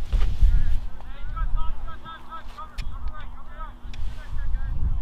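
Young players call out faintly in the distance.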